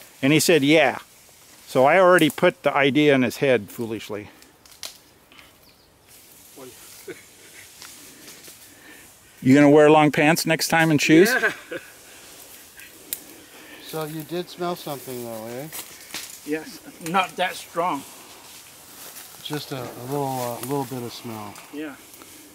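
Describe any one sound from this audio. An elderly man speaks calmly close by, outdoors.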